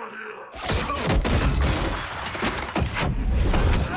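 A body thuds onto a wooden floor.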